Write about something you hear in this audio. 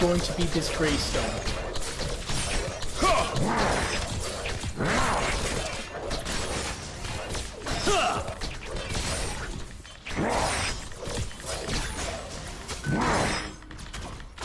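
Weapons clash and magic blasts burst in a fast fight.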